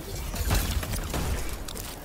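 A gun fires loud booming shots.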